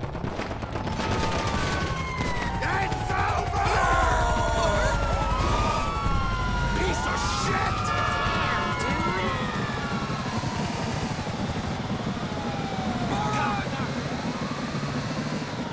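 Police sirens wail and rise and fall nearby.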